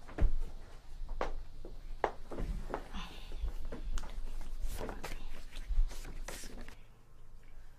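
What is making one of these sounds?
A young woman talks softly and laughs nearby.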